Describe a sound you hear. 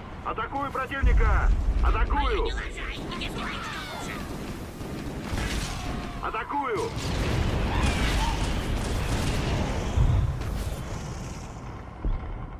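Weapons fire in rapid bursts with loud booms.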